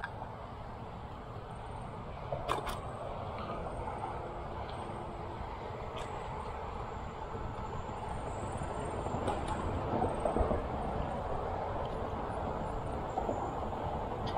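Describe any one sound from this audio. Bicycle tyres hum on a paved path.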